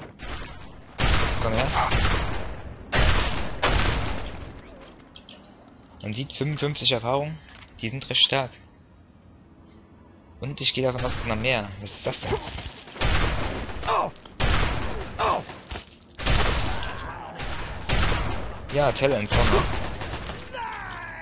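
A submachine gun fires in loud, rapid bursts.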